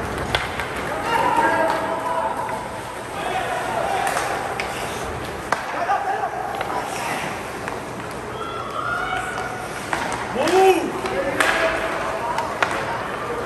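Spectators in the stands shout and call out.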